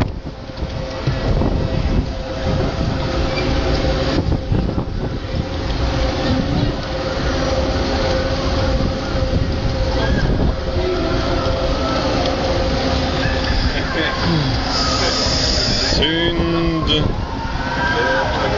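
A crowd of people on a street shouts and calls out.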